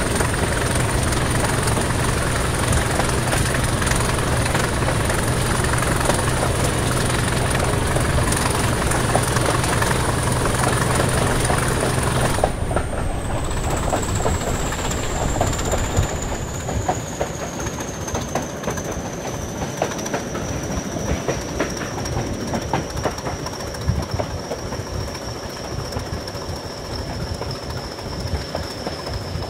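A diesel locomotive engine drones steadily close by.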